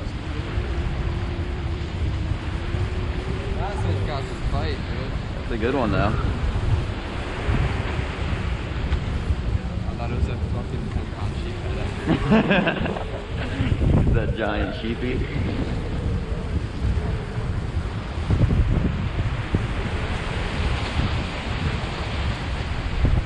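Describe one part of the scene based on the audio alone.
Surf churns and washes around pier pilings below.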